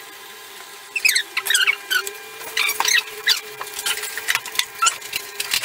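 A coffee machine hisses and sputters as it pours.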